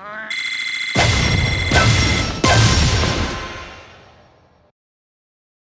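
A bright, cheerful jingle plays with chiming stars.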